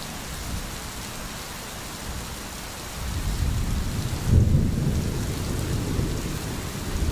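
Steady rain patters on leaves and a roof.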